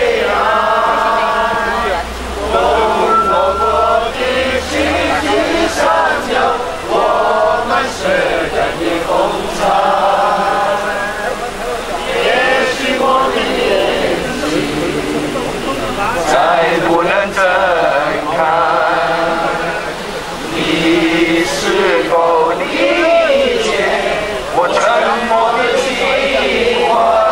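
A man sings into a microphone over loudspeakers in a large echoing hall.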